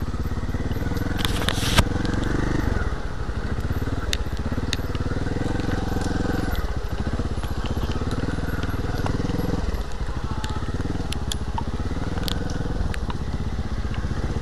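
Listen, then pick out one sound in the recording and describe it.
A dirt bike engine revs up and down as it rides along a trail.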